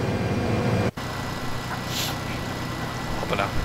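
A tractor engine hums while pulling an implement.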